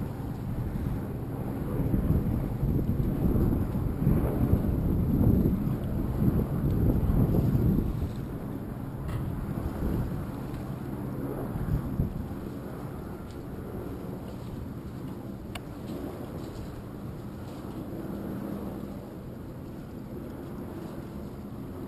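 Wind blows over open water, loudest early on.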